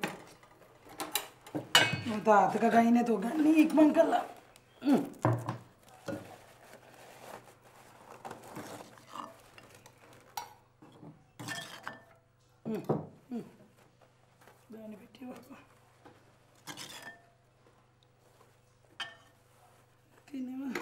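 Metal containers clink and clatter.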